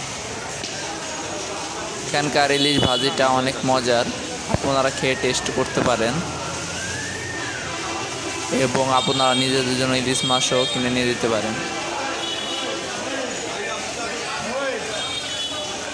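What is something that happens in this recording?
A crowd murmurs faintly in the background.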